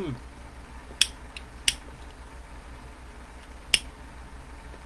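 A lighter clicks.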